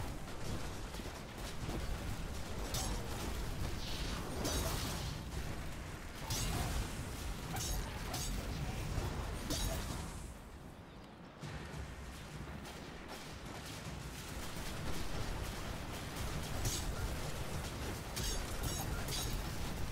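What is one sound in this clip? Energy blasts and explosions boom.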